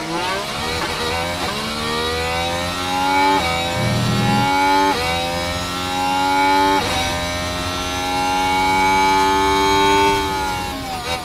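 A racing car engine screams at high revs, rising in pitch and dropping sharply with each gear change.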